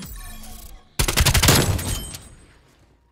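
A rifle fires a loud rapid burst of shots.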